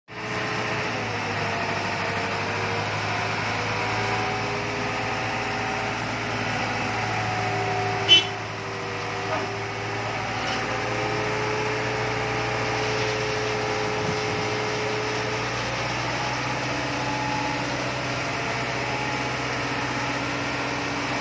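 A concrete mixer's engine rumbles steadily.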